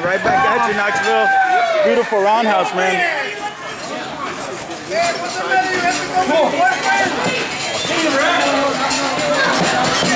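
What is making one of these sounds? Men talk loudly nearby in a large echoing hall.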